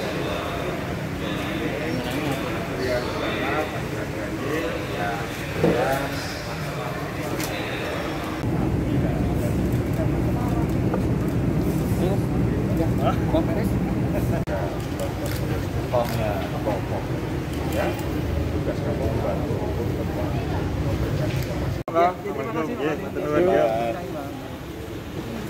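A crowd of men talks in the background.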